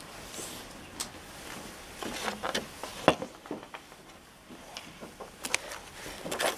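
Objects knock lightly on a table.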